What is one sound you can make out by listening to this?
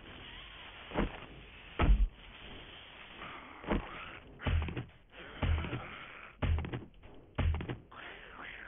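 A blade thuds repeatedly into a carcass.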